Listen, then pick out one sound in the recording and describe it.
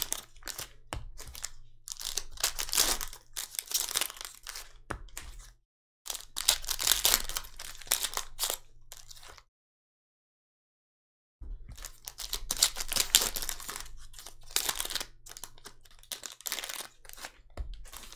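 Foil packs crinkle and rustle in gloved hands.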